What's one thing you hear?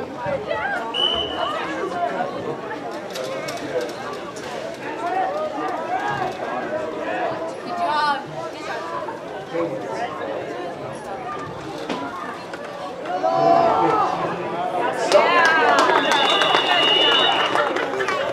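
A referee's whistle shrills briefly.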